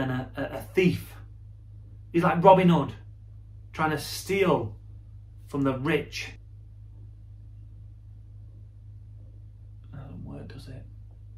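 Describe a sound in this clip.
A man speaks calmly and close to the microphone, in short bursts with pauses.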